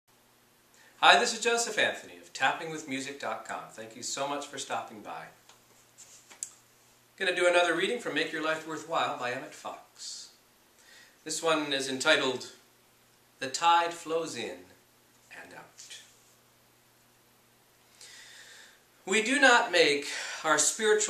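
A man speaks calmly and close to a microphone, reading aloud in pauses.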